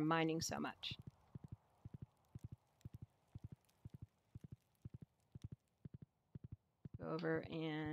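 Hooves clop quickly and steadily as a horse trots along.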